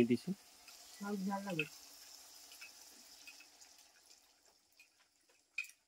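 Water pours into a pan of simmering curry.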